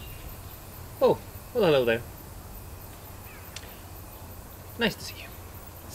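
A man speaks close by in short, drawn-out exclamations.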